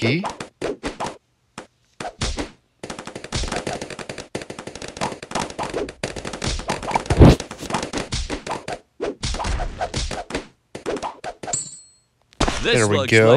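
Balloons pop in rapid bursts of small cartoon popping sounds.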